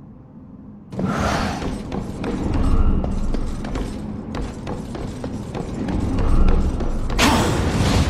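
Heavy armoured footsteps thud across a wooden floor.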